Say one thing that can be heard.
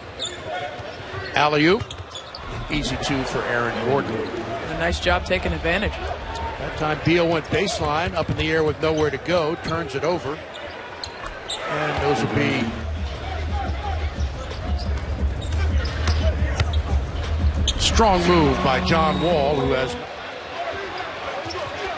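A crowd roars and cheers in a large echoing arena.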